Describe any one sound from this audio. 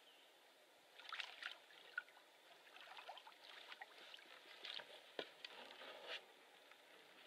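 A canoe hull scrapes and knocks against rocks.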